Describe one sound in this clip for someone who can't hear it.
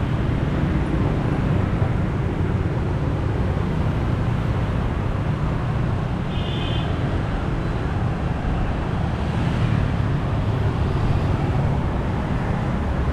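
Motorbike engines hum and buzz as they pass along a busy street.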